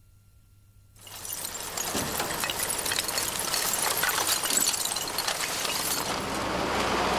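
Waste tumbles and crashes out of a tipping truck.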